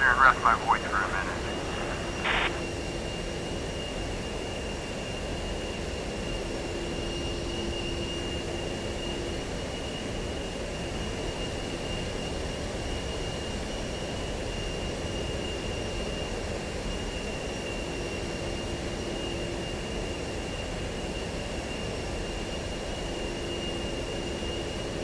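A jet engine drones and whines steadily.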